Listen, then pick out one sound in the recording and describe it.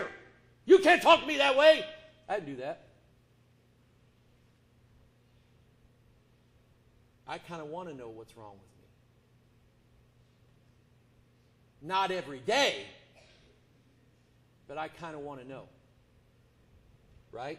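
A man preaches with emphasis into a microphone, in bursts with long pauses.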